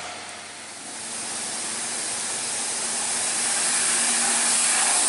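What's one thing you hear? A bus engine hums as the bus approaches.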